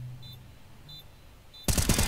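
A rifle fires a loud burst of shots.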